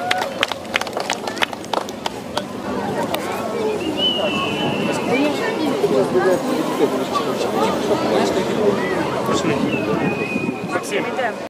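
A band of street musicians plays music.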